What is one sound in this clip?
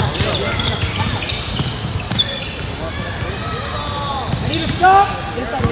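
Young players call out and shout in a large echoing gym.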